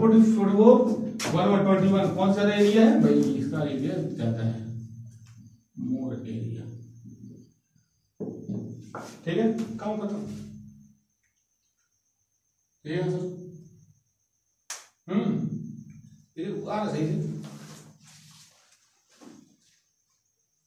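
A young man explains calmly and clearly, close by, in short phrases with pauses.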